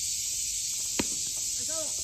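A bat cracks against a baseball outdoors.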